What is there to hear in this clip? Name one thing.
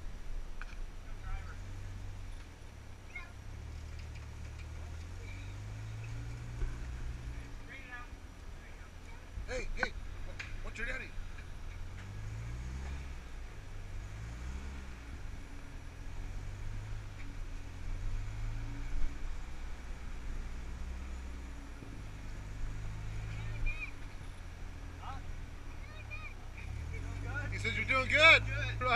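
An off-road truck engine rumbles and revs as it crawls over rocks.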